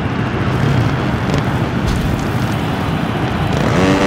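A motorcycle crashes with a sudden thud.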